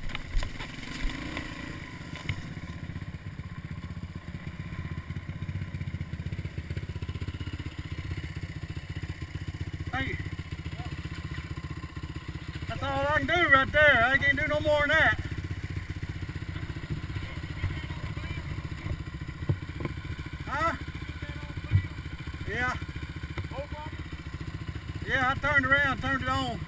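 A quad bike engine idles and rumbles steadily close by.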